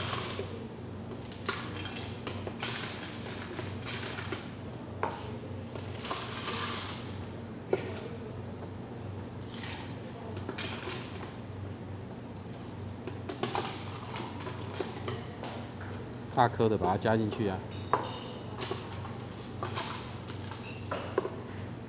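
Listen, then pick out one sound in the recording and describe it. Metal cups clatter against a plastic jug.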